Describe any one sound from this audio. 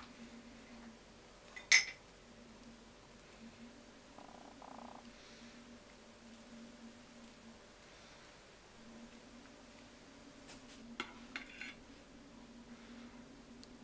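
A knife scrapes softly as it spreads cream on a cake.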